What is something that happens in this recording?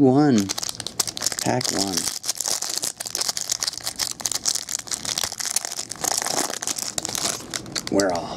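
A plastic wrapper crinkles as it is peeled off a stack of cards.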